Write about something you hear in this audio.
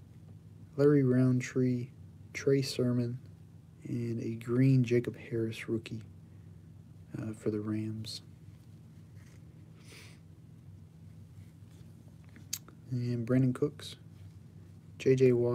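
Trading cards slide and rustle against each other in a gloved hand.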